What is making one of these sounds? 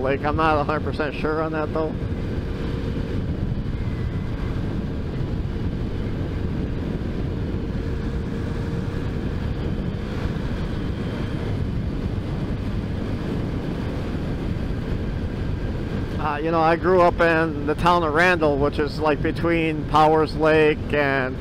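A motorcycle engine hums steadily as it rides along a road.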